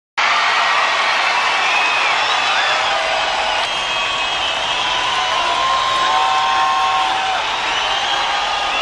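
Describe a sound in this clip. A large crowd cheers and screams loudly in a big echoing arena.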